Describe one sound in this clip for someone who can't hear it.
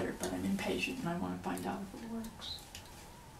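An older woman speaks calmly nearby.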